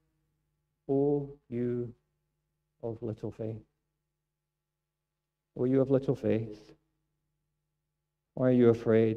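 A middle-aged man speaks calmly through a microphone, pausing between phrases, in a room with some echo.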